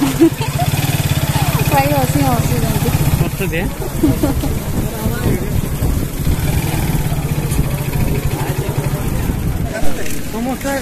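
Men and women chatter nearby in a crowd.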